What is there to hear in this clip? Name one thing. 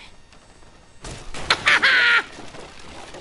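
Wood splinters and cracks loudly as a hatch is smashed open.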